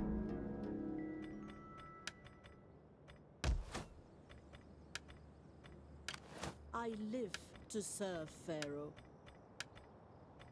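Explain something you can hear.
Short interface clicks sound as message windows open and close.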